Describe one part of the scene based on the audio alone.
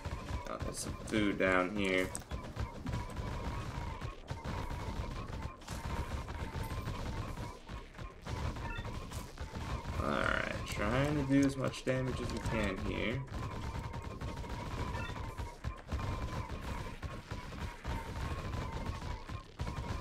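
Fast combat sound effects clatter steadily in a game.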